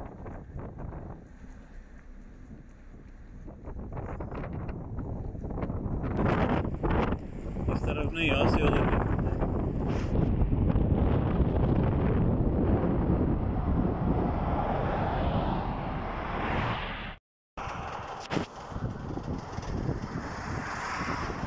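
Road and wind noise rumble from inside a moving car with the window open.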